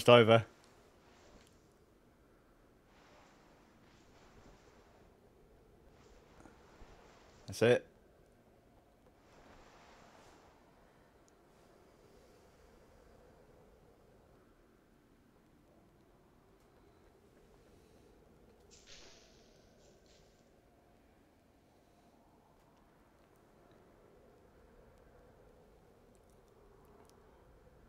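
Wind blows softly and steadily.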